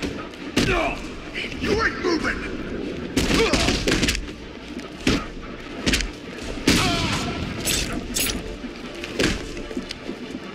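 Punches and kicks thud hard in a brawl.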